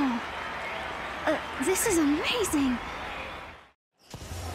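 A young woman speaks cheerfully.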